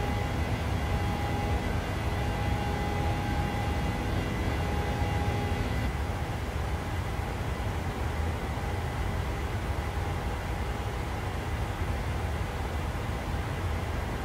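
Jet engines drone with a steady, deep roar.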